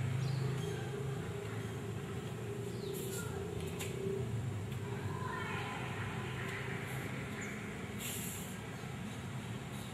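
Bare feet shuffle and slap softly on a hard floor.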